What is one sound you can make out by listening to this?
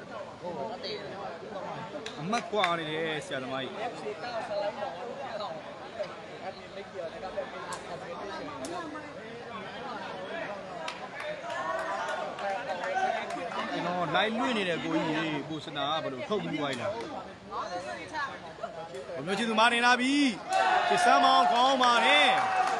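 A large crowd chatters and shouts.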